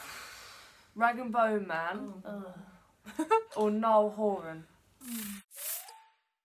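A young woman sings close by, without accompaniment.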